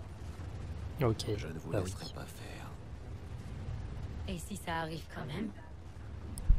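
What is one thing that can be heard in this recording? A woman speaks calmly over a radio.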